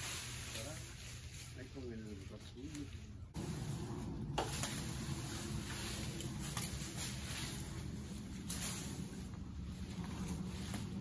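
Wind rustles the leaves of tall trees outdoors.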